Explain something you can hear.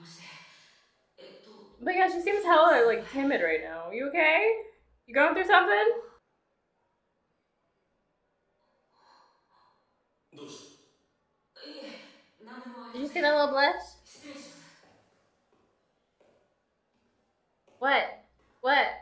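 A young woman talks with animation into a microphone, close by, in short bursts.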